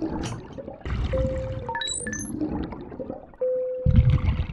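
An electronic scanner hums and beeps.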